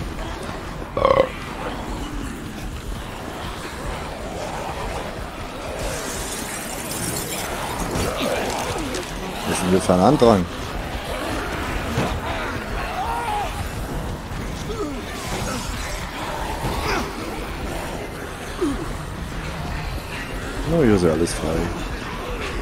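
Footsteps run over hard pavement.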